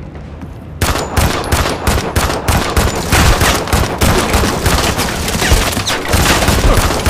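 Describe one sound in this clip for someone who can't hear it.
A rifle fires rapid shots in quick bursts.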